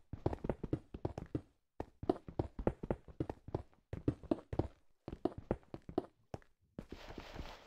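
Stone blocks crunch as they are rapidly mined.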